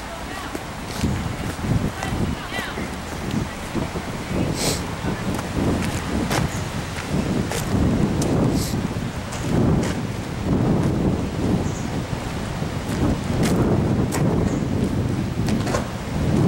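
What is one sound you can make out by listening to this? Wind gusts outdoors through the trees.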